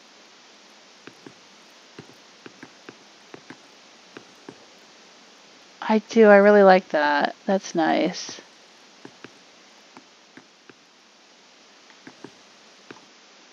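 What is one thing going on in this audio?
Footsteps crunch softly in snow.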